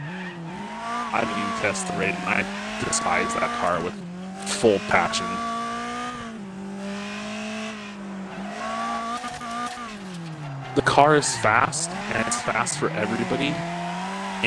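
Car tyres squeal while sliding through corners.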